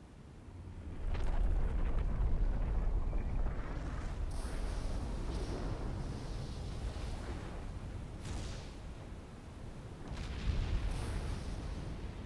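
A deep rumble of an erupting volcano rolls on and on.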